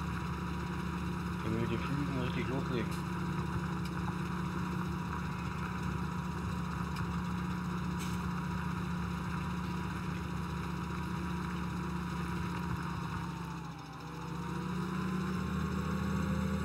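A tractor engine drones steadily, dipping briefly and then revving back up.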